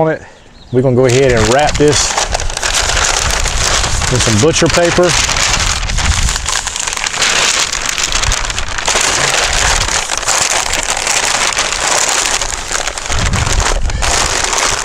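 Paper crinkles and rustles as it is folded.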